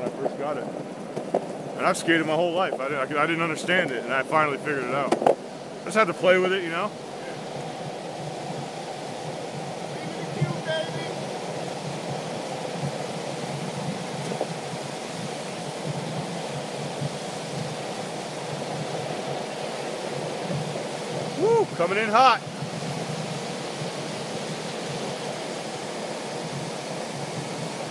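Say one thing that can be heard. Skateboard wheels roll and rumble steadily on asphalt.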